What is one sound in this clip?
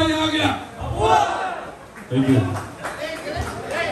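A man speaks loudly through a microphone and loudspeakers.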